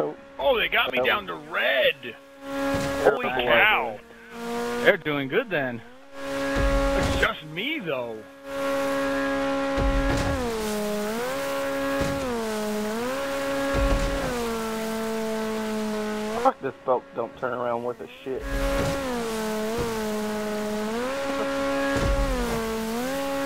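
A motorboat engine drones steadily, its pitch dipping and rising.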